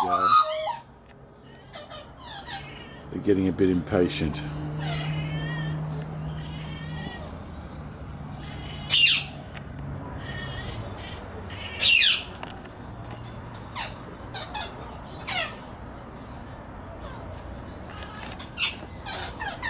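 A juvenile Australian magpie gives short begging calls.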